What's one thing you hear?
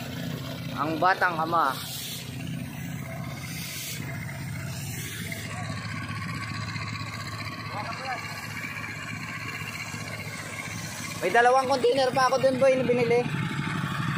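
A small engine hums steadily nearby.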